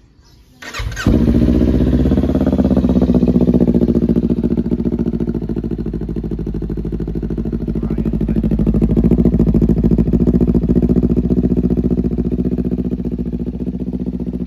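A motorcycle engine idles with a deep, throbbing rumble.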